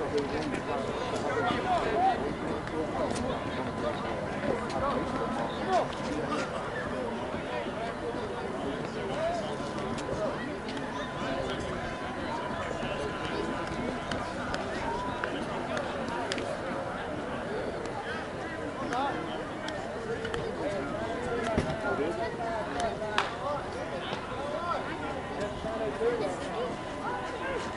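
Several men talk and call out across an open field outdoors.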